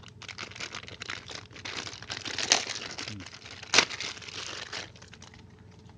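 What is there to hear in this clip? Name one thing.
A plastic bag crinkles and rustles as hands unwrap it.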